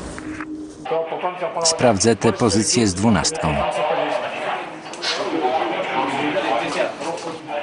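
A man speaks tersely over a radio.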